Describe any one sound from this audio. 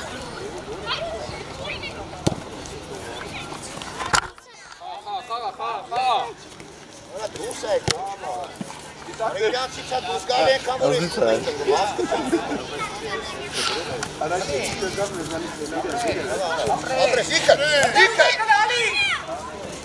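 Young children shout and call out across an open field.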